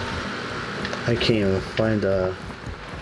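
A man speaks into a headset microphone.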